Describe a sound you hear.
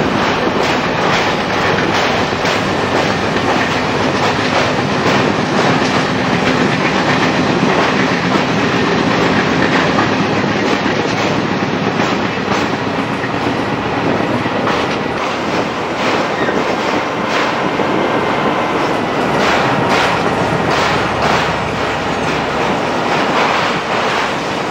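A train rumbles and clatters steadily over a steel bridge.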